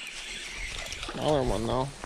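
A fishing reel clicks as it is wound.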